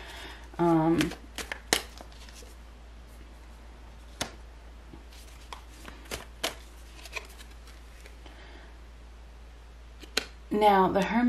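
Cards tap and slap softly as they are shuffled and laid on a table.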